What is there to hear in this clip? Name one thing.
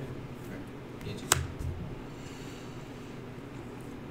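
A card is placed on a table with a soft tap.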